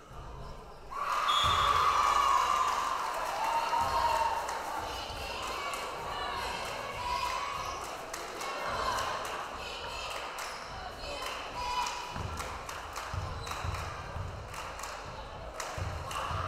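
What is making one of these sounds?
A crowd cheers and shouts loudly in an echoing gym.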